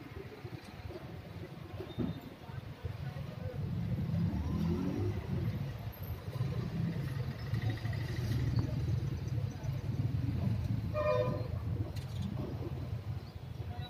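Traffic rumbles past on a road.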